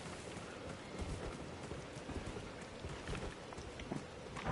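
Footsteps thud on a dirt path.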